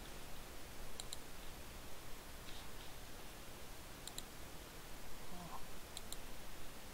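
Soft interface clicks sound in pairs.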